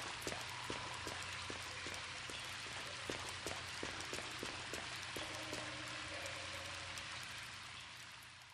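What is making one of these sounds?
Footsteps splash on a wet stone floor in a large echoing space.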